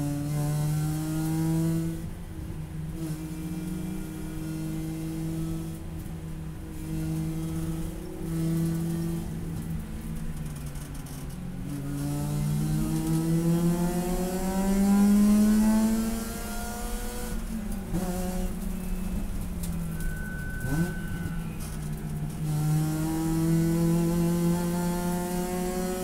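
A race car engine roars loudly from inside the cabin, revving up and down through the gears.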